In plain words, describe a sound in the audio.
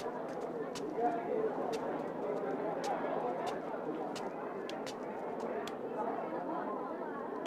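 A crowd of men and women murmur and chatter nearby.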